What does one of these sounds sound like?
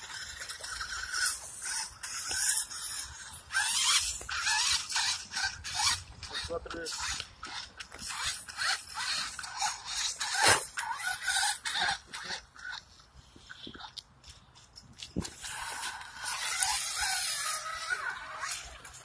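A toy car's electric motor whines as it drives.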